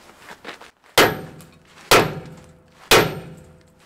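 A hammer strikes metal with loud, ringing blows.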